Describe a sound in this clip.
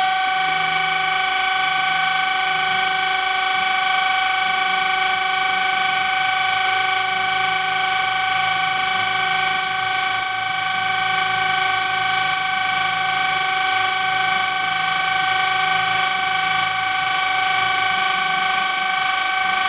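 A grinding machine hums with a steady high whine.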